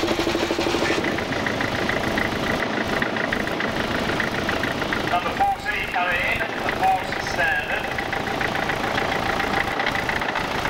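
A second tractor engine runs with a steady throb as it rolls up.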